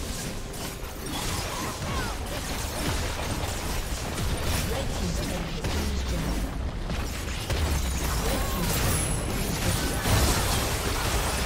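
Magic spells whoosh, crackle and burst in a busy fight.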